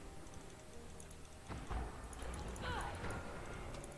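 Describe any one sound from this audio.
Video game spell and hit sound effects play.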